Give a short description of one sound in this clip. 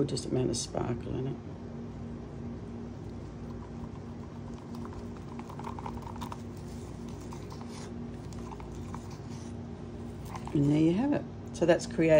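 A wooden stick scrapes and taps inside a plastic cup.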